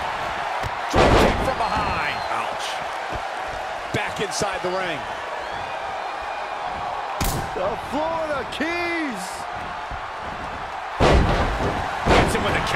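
Bodies slam heavily onto a mat with loud thuds.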